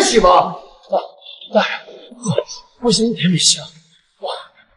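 A young man speaks in a strained, pleading voice.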